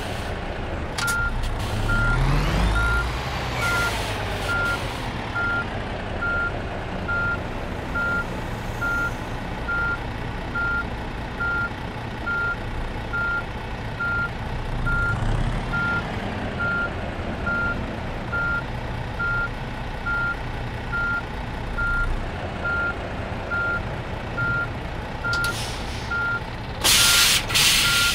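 A truck's reversing alarm beeps at an even pace.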